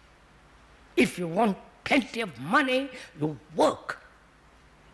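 An elderly man speaks slowly and calmly into a microphone.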